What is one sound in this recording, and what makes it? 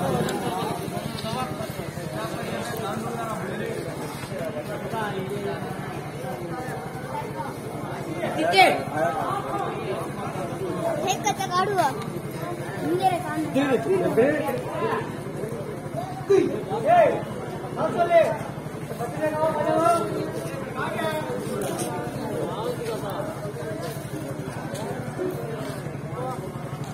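A crowd of men and boys talk and shout with animation outdoors.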